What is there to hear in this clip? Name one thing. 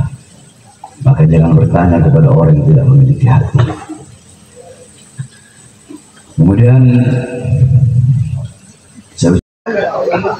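An elderly man chants loudly through a microphone and loudspeaker.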